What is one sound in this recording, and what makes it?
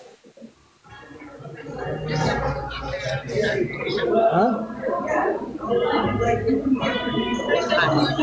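A man talks over an online call.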